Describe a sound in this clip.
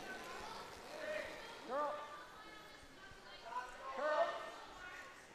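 A man shouts loud calls to sweepers.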